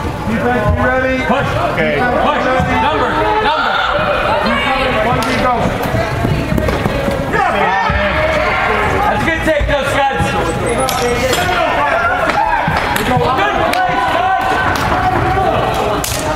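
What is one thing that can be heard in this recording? Lacrosse sticks clack against each other.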